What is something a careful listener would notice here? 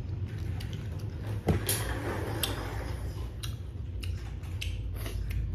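A young woman chews crunchy food close by.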